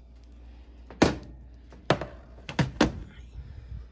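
A metal baking tray knocks on a hard surface.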